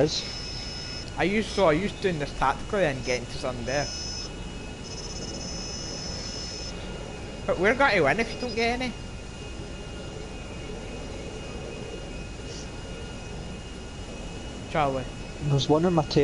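A jet plane's engines drone steadily.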